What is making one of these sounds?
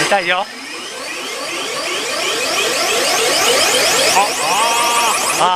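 A pachinko machine plays a fast series of rising electronic tones.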